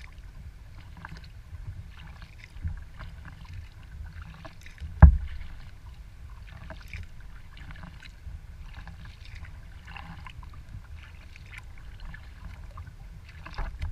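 Wind rumbles across the water outdoors.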